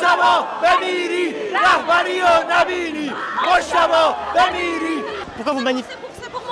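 A middle-aged man shouts slogans with force.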